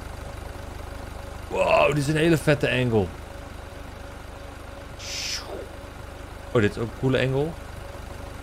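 A forklift engine idles with a low steady hum.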